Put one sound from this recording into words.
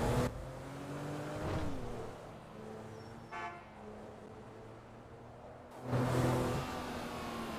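A car engine hums steadily as a car drives along a road.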